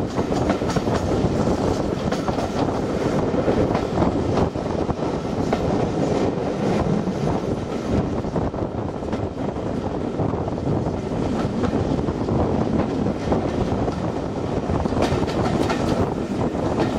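Train wheels rumble and clatter steadily over rail joints.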